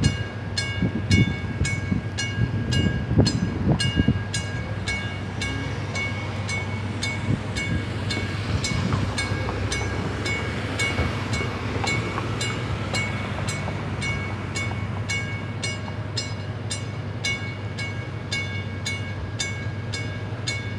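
A warning bell rings rapidly and steadily.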